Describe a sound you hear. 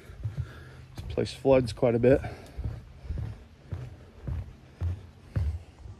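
Footsteps thud on a wooden boardwalk.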